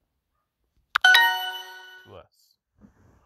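A bright, ringing chime sounds once and fades.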